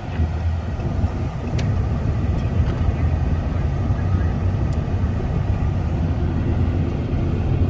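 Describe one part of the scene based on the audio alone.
A car engine hums steadily while driving, heard from inside the car.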